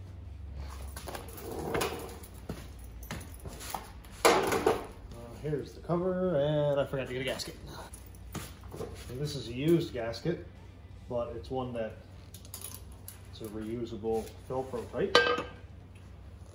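Metal parts clink and clatter as they are handled.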